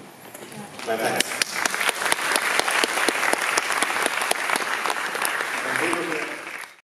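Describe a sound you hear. An audience applauds with many hands clapping.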